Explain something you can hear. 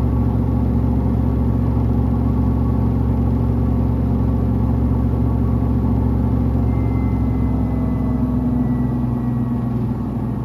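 A washing machine drum hums and rumbles steadily as it turns.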